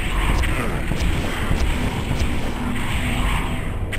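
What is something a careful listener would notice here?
Fireballs burst with loud, booming explosions.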